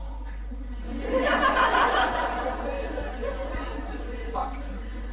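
A middle-aged man laughs softly into a microphone.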